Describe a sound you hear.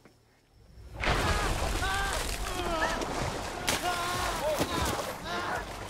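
A young woman cries out in distress.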